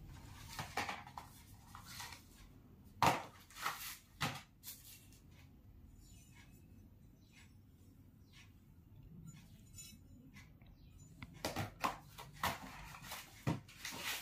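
Cardboard boxes knock and tap against a table.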